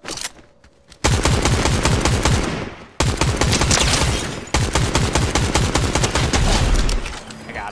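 Rapid gunfire rattles in loud, sustained bursts.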